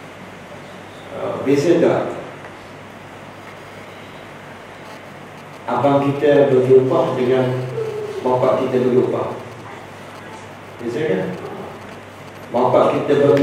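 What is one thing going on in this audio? A middle-aged man speaks calmly and with emphasis through a clip-on microphone, in bursts with pauses.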